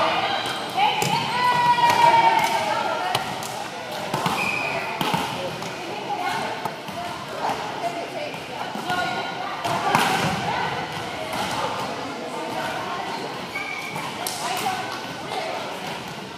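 Volleyballs thump sharply on hands and the hard floor.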